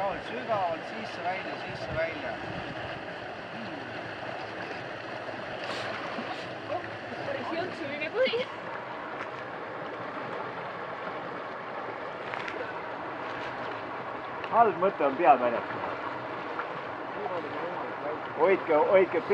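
Water ripples and laps steadily outdoors.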